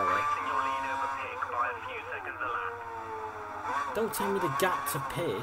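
A racing car engine whines at high revs.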